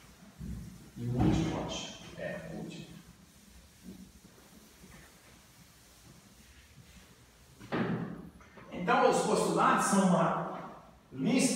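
A middle-aged man lectures in a room with a slight echo.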